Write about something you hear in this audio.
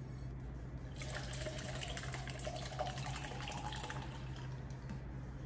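Liquid pours into a cup.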